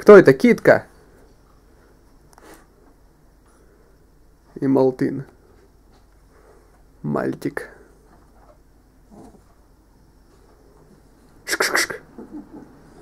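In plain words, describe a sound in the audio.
A small dog barks and yelps in short, sharp bursts.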